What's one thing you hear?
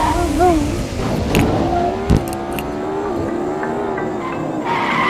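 A sports car engine roars and revs higher as the car speeds up.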